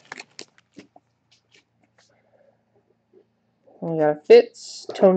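Trading cards rustle and slide against each other in a person's hands.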